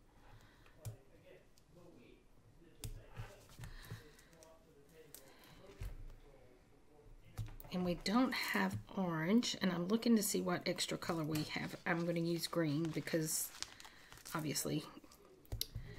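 Stiff paper rustles and crinkles close by.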